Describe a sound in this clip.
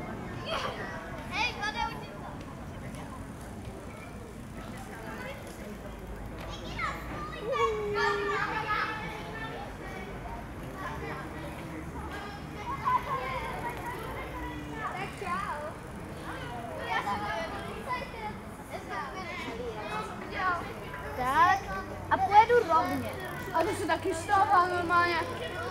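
Children talk and call out nearby outdoors.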